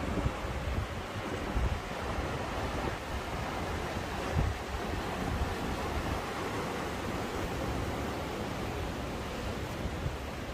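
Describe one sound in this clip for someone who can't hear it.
Water rushes and splashes over rocks below.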